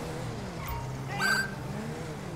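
A police siren chirps briefly.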